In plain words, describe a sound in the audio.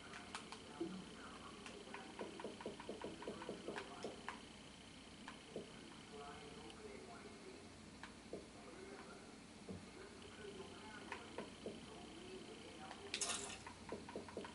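Short electronic menu clicks tick now and then.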